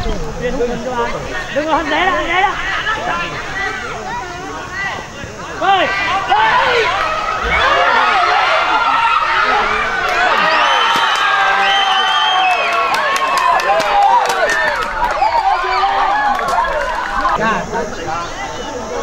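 A crowd of young spectators shouts and cheers excitedly outdoors.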